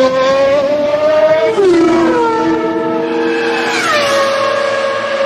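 A racing car engine roars by, its pitch dropping.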